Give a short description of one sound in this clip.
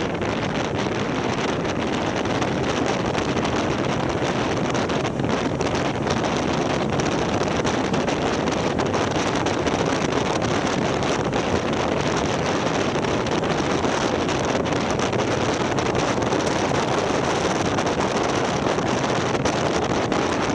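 Strong wind rushes loudly past the microphone on a moving motorcycle.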